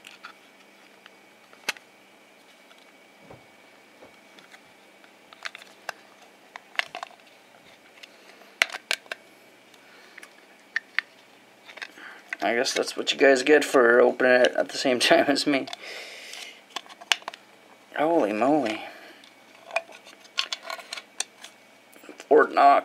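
A plastic case clicks and taps as hands turn it over.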